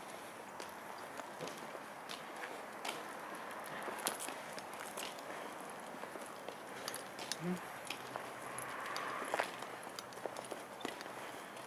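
Small dogs' claws click and patter on pavement.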